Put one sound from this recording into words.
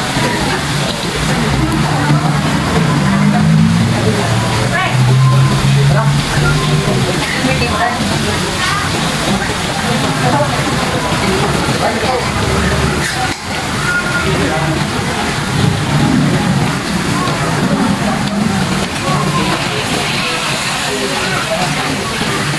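A crowd of people chatters all around in a busy, noisy room.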